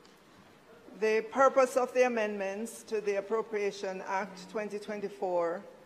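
A woman speaks steadily into a microphone.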